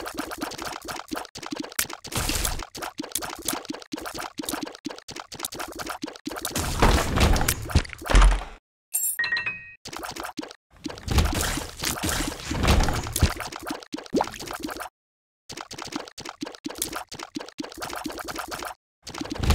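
Rapid game shots pop and splatter in quick bursts.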